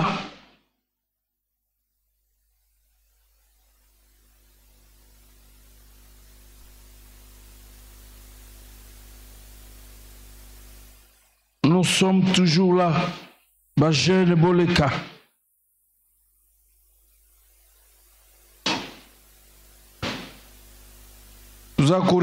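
A man speaks through a microphone, in short bursts with long pauses.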